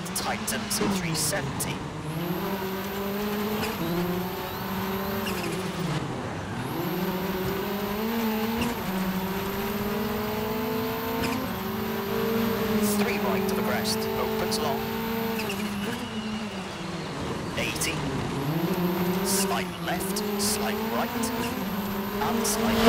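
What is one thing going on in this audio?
A rally car engine roars, revving up and dropping as gears shift.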